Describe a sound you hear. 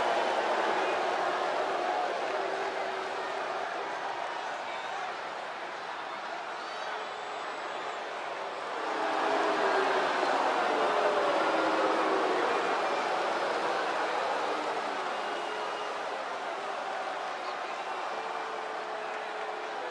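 A large crowd cheers loudly in a big echoing arena.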